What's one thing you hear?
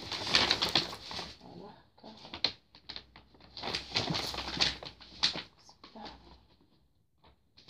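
Paper rustles and scrapes under a hand.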